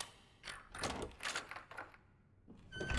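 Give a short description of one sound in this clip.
A key turns and clicks in a door lock.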